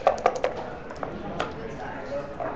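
Dice clatter onto a wooden board.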